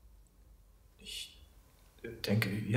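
A man answers briefly and hesitantly.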